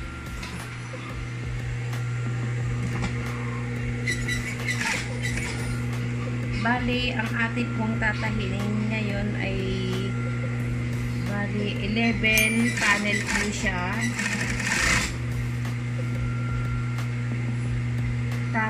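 A sewing machine hums steadily as it stitches.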